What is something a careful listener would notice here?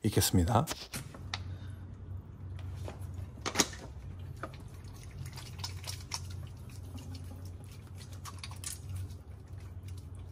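Wet hands rub together with soap.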